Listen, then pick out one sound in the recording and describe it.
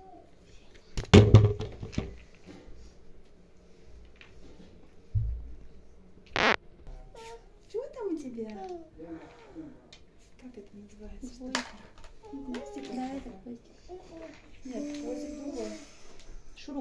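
Plastic toys clatter and knock.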